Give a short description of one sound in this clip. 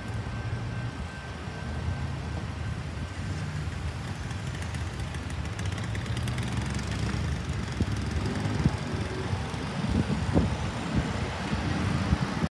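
A pickup truck's engine idles and then pulls away.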